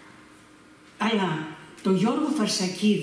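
An elderly woman reads aloud into a microphone.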